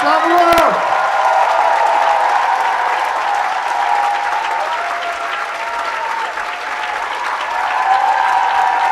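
A large crowd of young people cheers and shouts excitedly.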